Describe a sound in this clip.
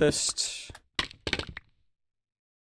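Many blocks break apart in a quick burst of crunching.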